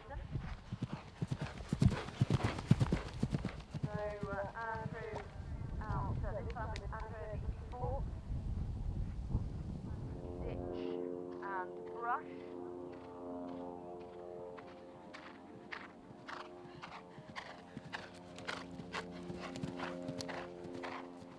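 A horse gallops, hooves thudding on grass.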